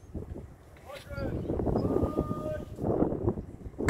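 A man shouts drill commands in the distance.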